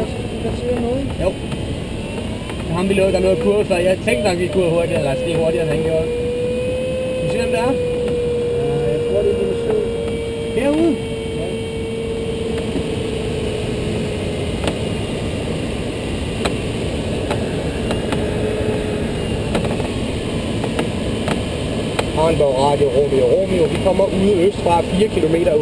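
Air rushes steadily over a glider's canopy.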